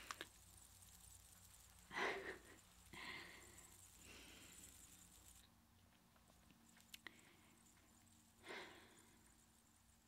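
A young woman whispers softly and closely into a microphone.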